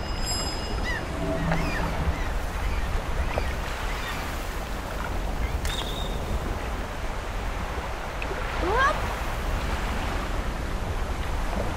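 Waves wash gently onto a shore.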